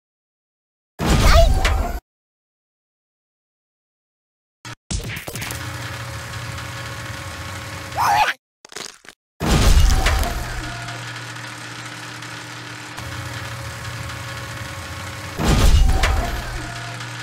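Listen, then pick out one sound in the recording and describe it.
A heavy press slams down with loud thuds.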